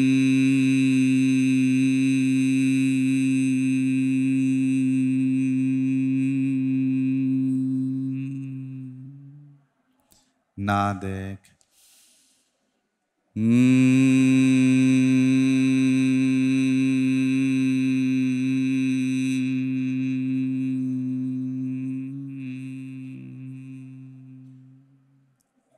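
A man hums a long, steady, low tone into a microphone.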